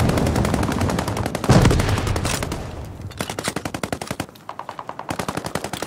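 Footsteps thud quickly on stone steps.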